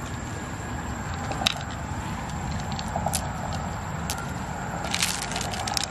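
Pearls rattle into a shell.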